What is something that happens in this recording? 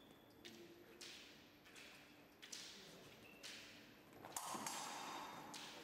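Fencers' feet stamp and shuffle on a hard floor in an echoing hall.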